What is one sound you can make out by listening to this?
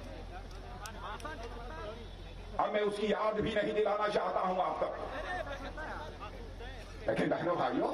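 An elderly man gives a speech forcefully through a microphone and loudspeakers, outdoors.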